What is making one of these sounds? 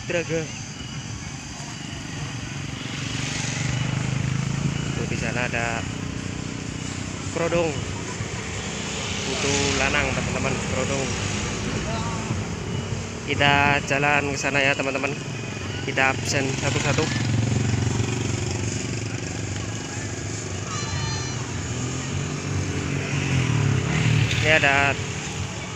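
A crowd of men talk outdoors nearby.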